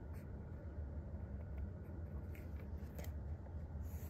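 A pen is set down on paper with a light tap.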